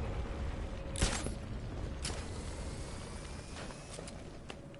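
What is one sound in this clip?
A grappling line zips through the air.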